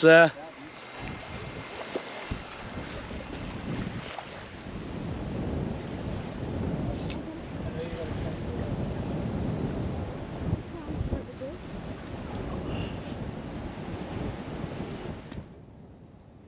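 Wind blows outdoors by the sea.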